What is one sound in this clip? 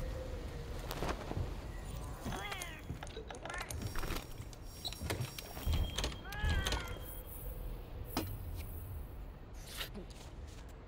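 Short electronic menu chimes and clicks sound.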